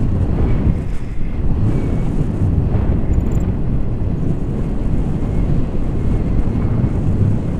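Strong wind rushes and buffets loudly, outdoors high in the air.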